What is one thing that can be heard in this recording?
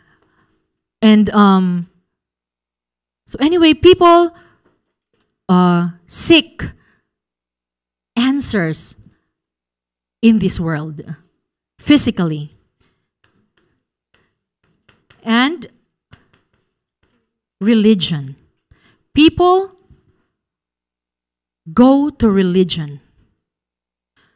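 A young woman speaks calmly and with pauses through a microphone.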